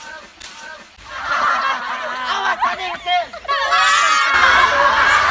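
A group of teenagers cheer and shout excitedly nearby.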